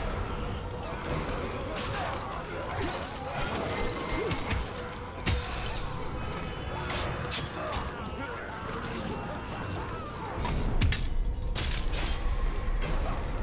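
Weapons clash and strike in a fight.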